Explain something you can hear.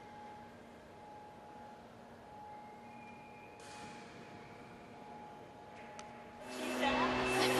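A tuning fork rings with a faint steady tone.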